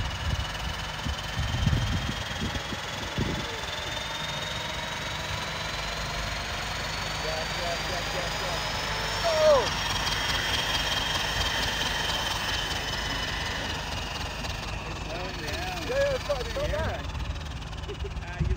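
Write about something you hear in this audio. A turbocharger whines high and slowly rises in pitch.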